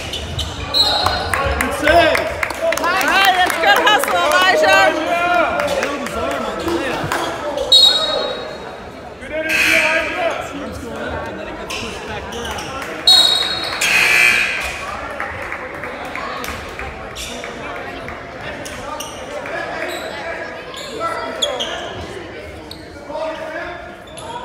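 Spectators and players call out in an echoing gym.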